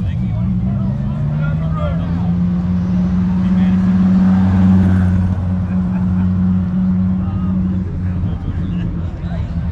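A V10 sports car approaches and drives past with a deep engine drone.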